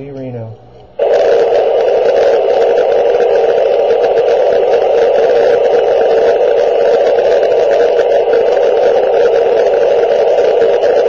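A handheld radio crackles with loud, steady static.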